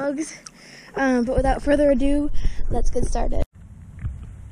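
A young girl talks excitedly close to the microphone.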